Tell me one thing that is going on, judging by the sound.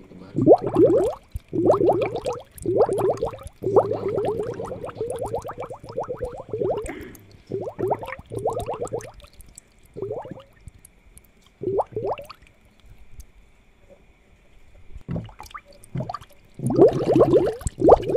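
Air bubbles gurgle and burble in water in bursts.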